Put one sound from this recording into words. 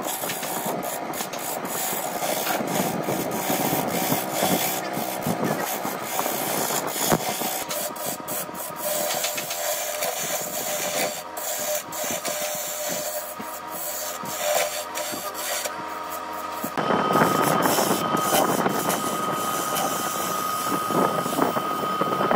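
A wood lathe whirs steadily as it spins.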